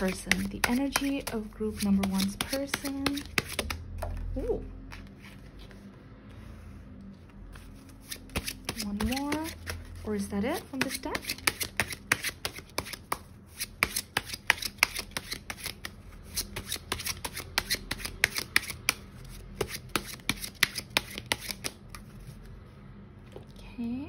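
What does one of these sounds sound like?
Playing cards are shuffled with quick, crisp flicks.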